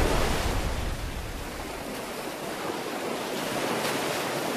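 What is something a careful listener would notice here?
Open sea water churns and laps.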